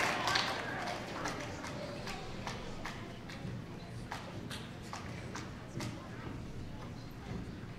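An audience claps along in a steady rhythm.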